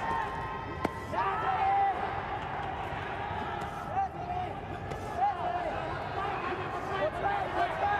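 Gloved punches land with dull thuds.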